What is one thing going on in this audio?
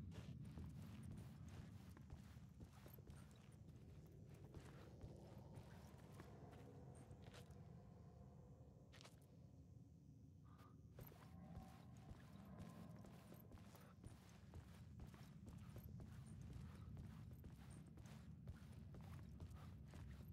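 Footsteps crunch slowly on gravel and wooden ties.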